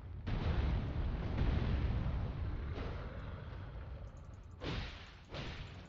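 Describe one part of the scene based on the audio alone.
A sword swings and slashes through the air.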